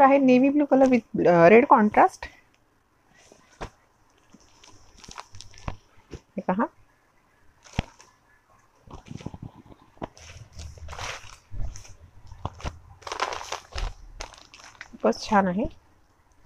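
Cloth rustles as fabric is unfolded and handled.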